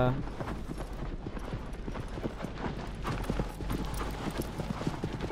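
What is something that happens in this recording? A horse gallops with quick, rhythmic hoofbeats.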